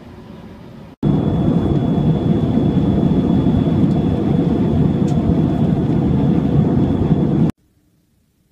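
An airplane engine drones loudly and steadily inside the cabin.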